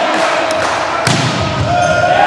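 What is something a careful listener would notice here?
A volleyball is struck hard on a serve.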